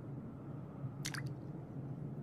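A single water drop falls and drips.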